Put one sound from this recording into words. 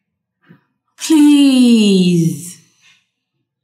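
A young boy whines in a long, falling moan.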